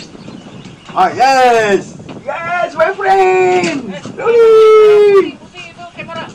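A man shouts loudly and excitedly close by.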